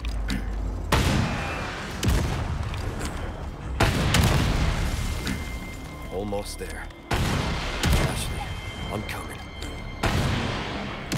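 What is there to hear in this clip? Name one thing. Rockets explode with heavy booms that echo.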